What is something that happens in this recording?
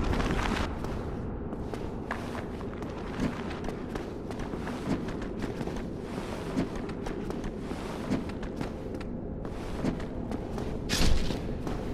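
Heavy footsteps scrape on stone.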